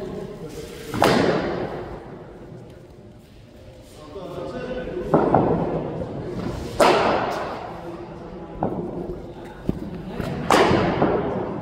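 A cricket bat strikes a ball with sharp cracks in an echoing space.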